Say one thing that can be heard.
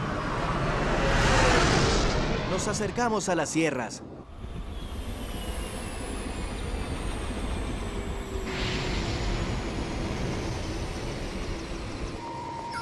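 A jet engine roars loudly as an aircraft flies past.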